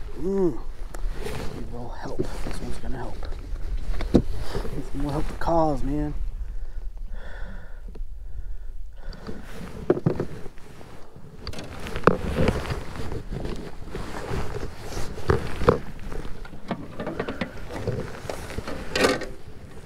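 Wind rumbles over open water.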